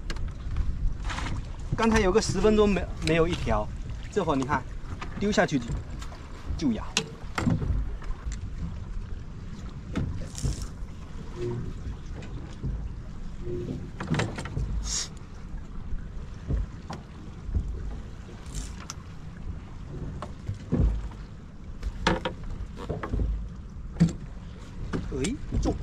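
Fishing gear clicks and knocks against a boat.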